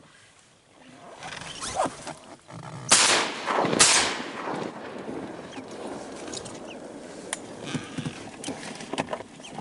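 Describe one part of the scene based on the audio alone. Wind rustles through tall reeds outdoors.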